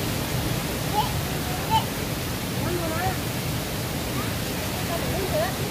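A young girl talks in short high calls nearby.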